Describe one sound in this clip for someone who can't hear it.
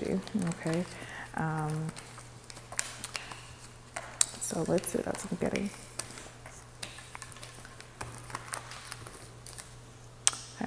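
Playing cards slide and tap together on a hard surface.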